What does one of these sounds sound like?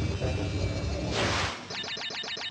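Upbeat video game music plays.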